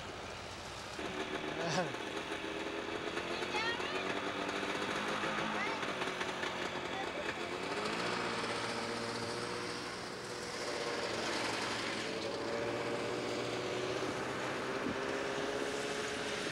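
A snowmobile engine idles and hums steadily.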